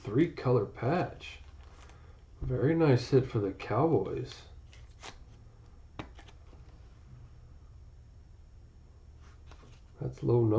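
A plastic card holder clicks and rustles between fingers.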